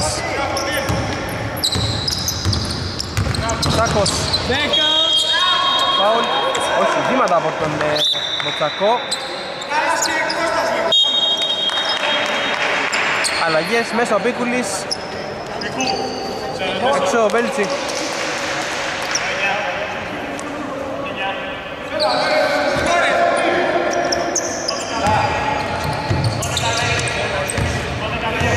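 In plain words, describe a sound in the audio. A large indoor hall echoes with the sounds of play.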